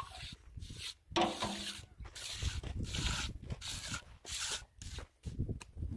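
A trowel scrapes wet cement.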